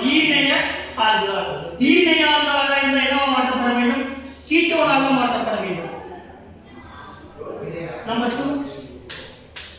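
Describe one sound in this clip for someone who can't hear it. A young man speaks calmly and clearly nearby, in a room with some echo.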